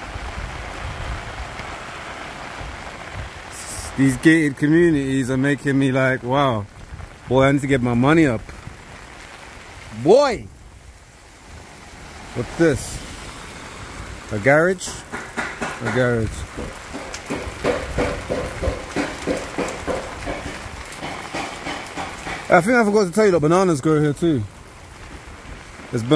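Light rain patters steadily outdoors.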